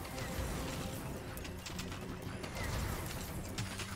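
Laser blasts fire in rapid bursts.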